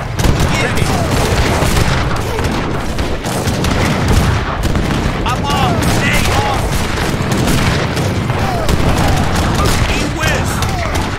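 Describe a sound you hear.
Cannons boom with deep, rumbling blasts.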